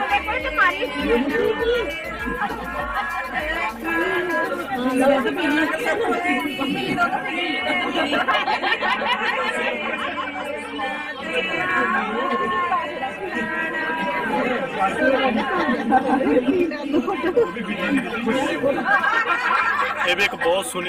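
Several people chatter at once nearby.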